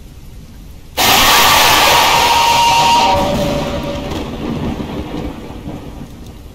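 A loud jump-scare noise blares and slowly fades.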